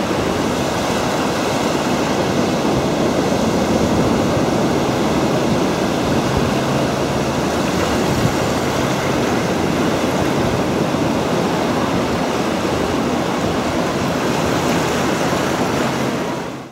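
Rough waves crash and churn on the shore.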